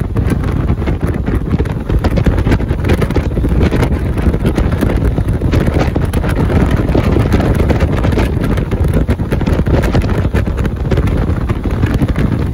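A vehicle's tyres roar steadily on the road.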